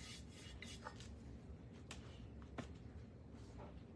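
A brush taps lightly on a plate.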